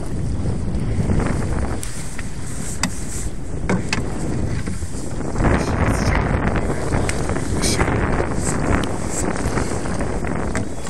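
Waves slosh against the side of a boat.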